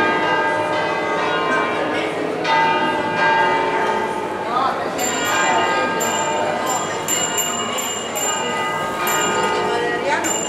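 Large church bells ring loudly in a steady peal, their tones overlapping and ringing on.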